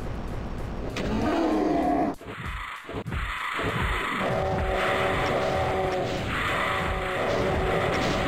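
Rockets explode with heavy booms.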